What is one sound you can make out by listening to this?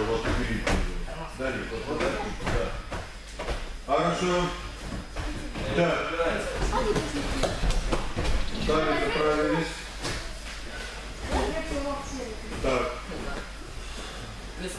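Children talk and call out in a large echoing hall.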